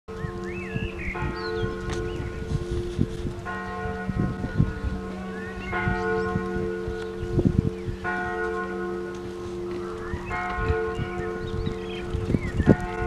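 A trumpet plays slow, long held notes outdoors.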